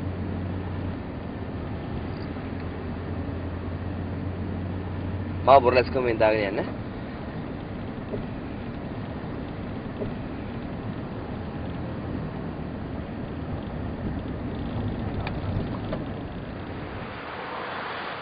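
A car engine hums steadily from inside the vehicle.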